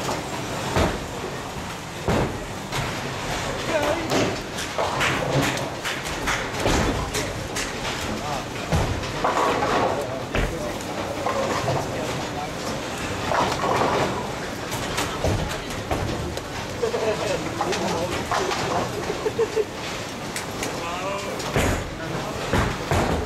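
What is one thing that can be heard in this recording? Men talk and call out nearby.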